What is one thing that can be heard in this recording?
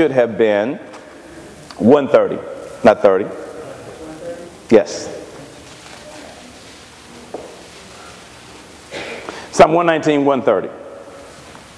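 A man speaks slowly and with feeling into a microphone, in a reverberant hall.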